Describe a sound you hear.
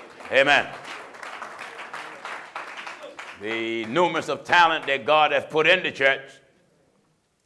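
A middle-aged man speaks with animation into a microphone, his voice ringing through a large hall.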